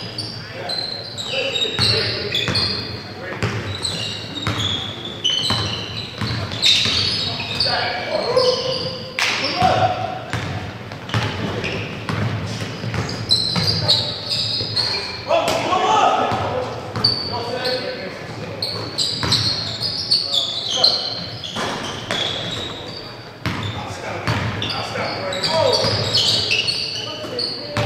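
Young men shout and call out to each other on the court.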